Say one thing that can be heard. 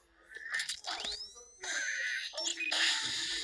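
A cartoon bird whooshes through the air with a rising whistle.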